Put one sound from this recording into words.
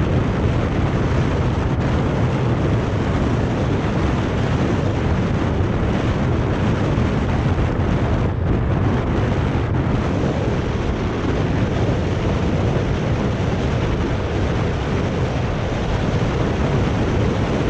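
Bicycle tyres hum on asphalt.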